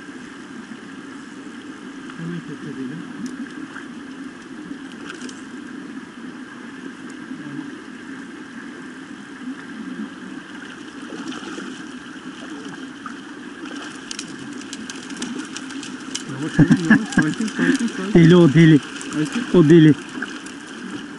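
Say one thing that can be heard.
A shallow stream trickles steadily.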